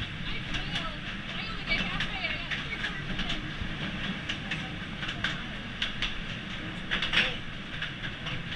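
A small train rumbles and clatters steadily along rails in an echoing tunnel.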